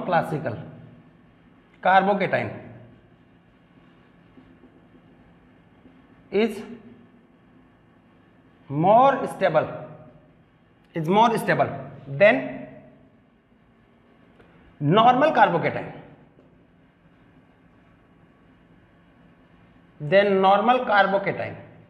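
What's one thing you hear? A man speaks in short bursts, explaining calmly close by.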